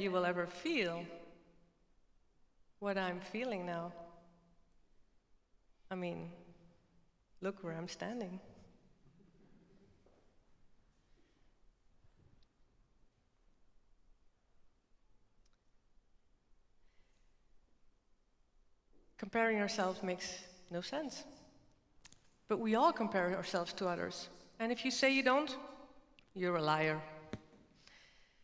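A woman speaks with animation through a microphone, in short phrases with long pauses.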